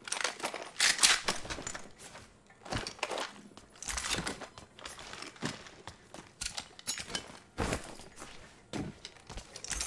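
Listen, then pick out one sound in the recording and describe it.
Items clink and click as they are picked up.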